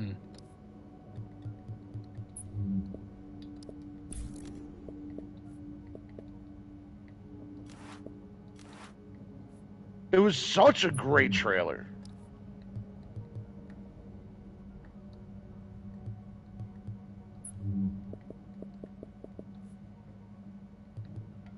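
Soft electronic menu clicks tick now and then.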